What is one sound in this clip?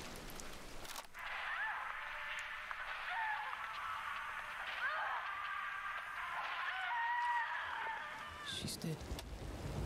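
A voice speaks through a crackly radio.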